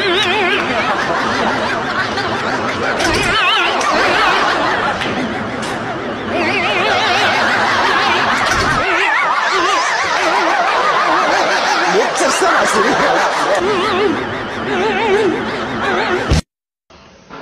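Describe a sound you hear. A woman speaks excitedly close by.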